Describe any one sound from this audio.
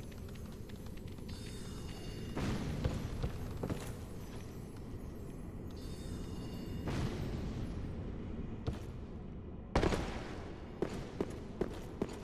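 Heavy armoured footsteps clank on stone.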